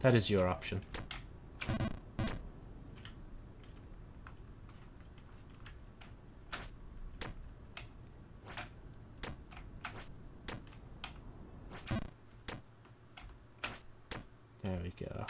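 Short electronic game blips sound again and again.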